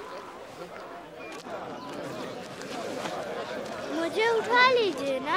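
Many men and women murmur and talk in a crowd nearby.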